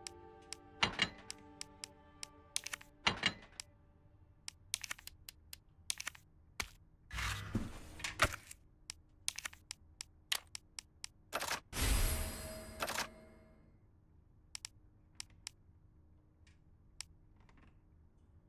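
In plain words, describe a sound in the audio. Short game menu clicks and blips sound as selections change.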